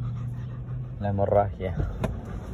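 A dog whines briefly close by.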